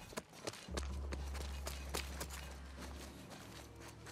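Footsteps climb concrete steps.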